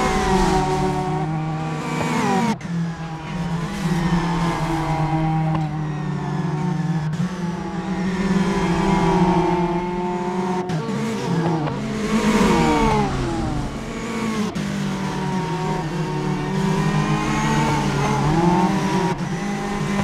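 Racing car engines roar and rev loudly.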